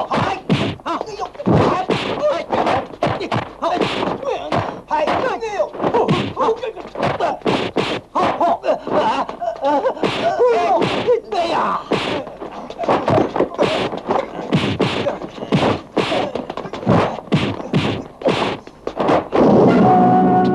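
Men grunt and shout while fighting.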